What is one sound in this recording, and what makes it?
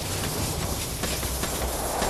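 A flamethrower roars loudly.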